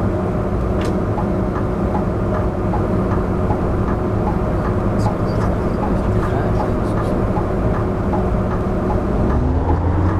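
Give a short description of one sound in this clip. A bus engine hums steadily as the bus drives along a street.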